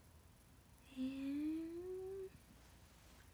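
A young woman hums a drawn-out, rising note.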